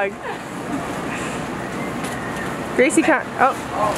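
A young woman laughs and talks cheerfully.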